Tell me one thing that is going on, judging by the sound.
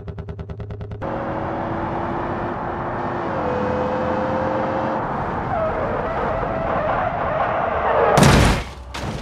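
A car engine roars steadily as the car speeds along.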